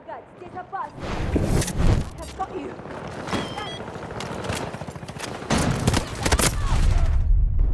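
Rapid gunfire rattles in bursts, loud and close.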